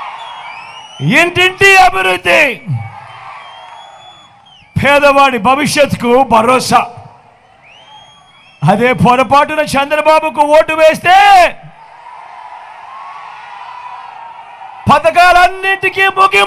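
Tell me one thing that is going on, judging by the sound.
A man speaks loudly and forcefully through a microphone and loudspeakers, outdoors.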